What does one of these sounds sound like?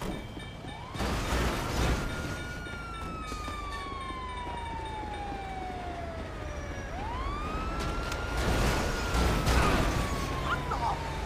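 A siren wails, rising and then slowly falling in pitch.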